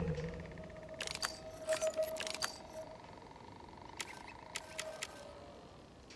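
Soft interface clicks tick in quick bursts.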